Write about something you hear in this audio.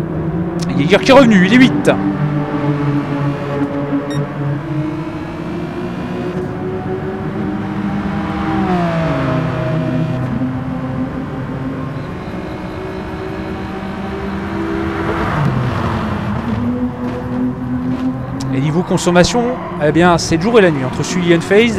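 Racing car engines roar and whine, rising and falling in pitch as they shift gears.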